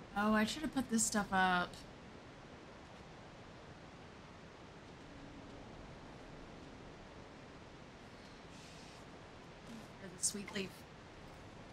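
A woman speaks casually into a microphone, close by.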